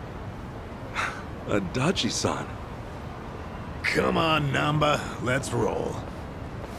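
A younger man answers in a tense, pleading voice.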